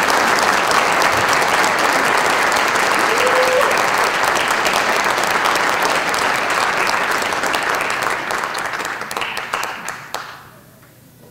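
A crowd applauds loudly, then the clapping dies away.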